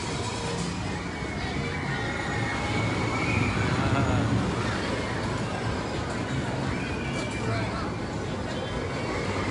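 A crowd chatters and calls out nearby outdoors.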